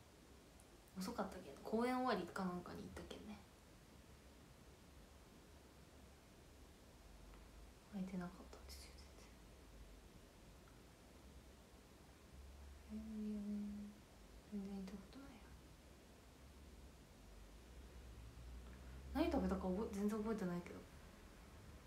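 A young woman speaks softly and briefly, close to a microphone.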